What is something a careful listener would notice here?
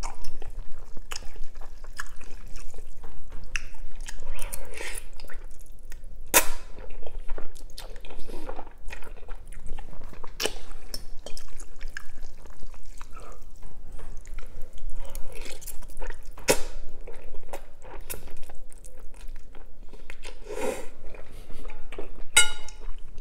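A metal fork clinks against a glass bowl.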